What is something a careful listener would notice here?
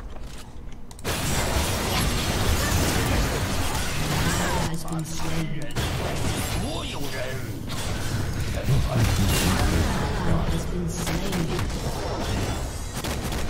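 Video game spell effects burst and clash during a fight.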